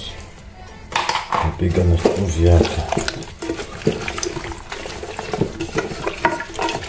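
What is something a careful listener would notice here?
Hands squish and squelch through wet raw meat and onions in a metal pot.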